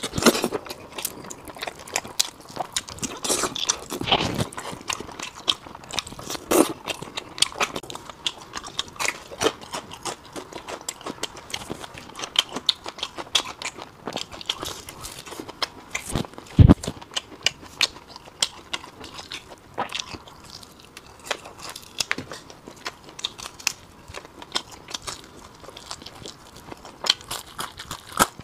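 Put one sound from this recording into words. A man chews and smacks his lips close to a clip-on microphone.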